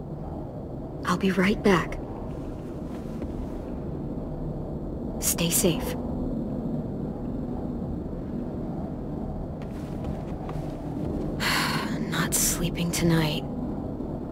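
A young girl speaks softly and quietly.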